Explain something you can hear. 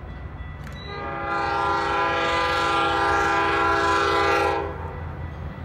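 A train horn blares loudly.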